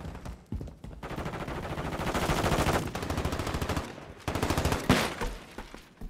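A rifle fires rapid bursts of automatic gunfire.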